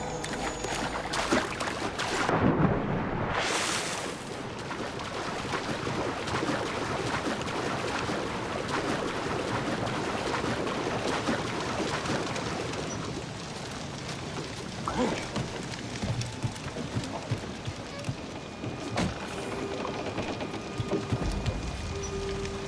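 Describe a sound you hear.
Cannons boom loudly.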